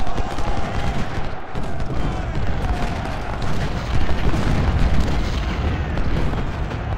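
Cannons boom in a battle.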